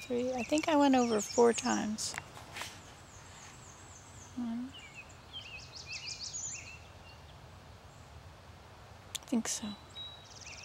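An elderly woman speaks calmly close by, in short bursts with pauses.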